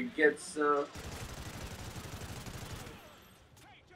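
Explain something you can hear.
Rifle shots fire in a rapid burst.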